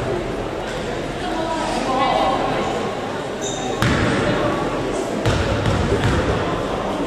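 Spectators murmur and chatter in a large echoing hall.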